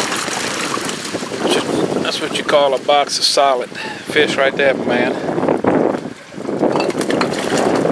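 Wet fish slide and thud out of a cooler onto wooden boards.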